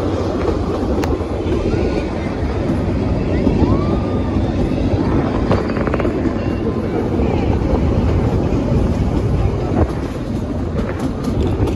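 A train rumbles steadily along its track, heard from on board.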